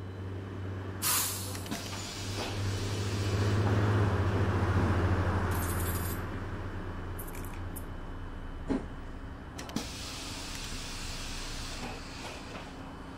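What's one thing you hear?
Bus doors hiss and thump open and shut.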